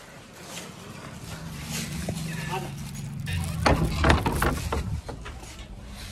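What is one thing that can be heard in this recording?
A wooden door creaks and clatters as it swings open.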